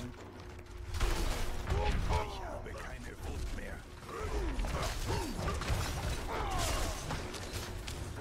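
Weapons clash and magic bursts in a hectic fight.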